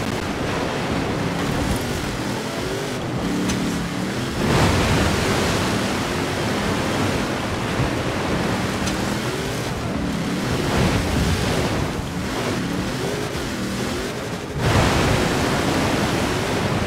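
Water sprays and splashes loudly under tyres.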